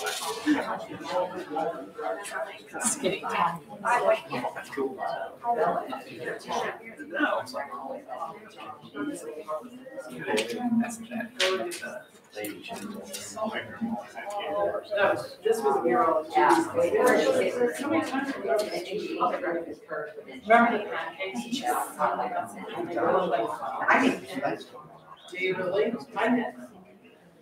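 Several men and women talk at once, calmly, in a room with a slight echo.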